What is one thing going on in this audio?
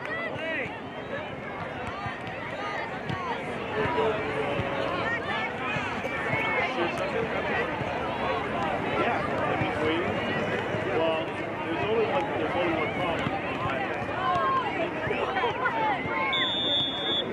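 A crowd of spectators and young players shout and call out outdoors.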